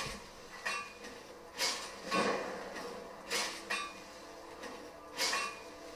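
A hammer clangs on an anvil as an item is forged.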